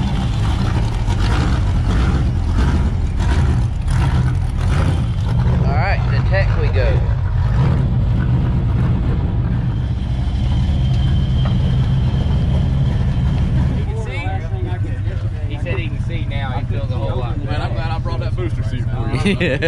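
A race car engine idles with a loud, deep rumble.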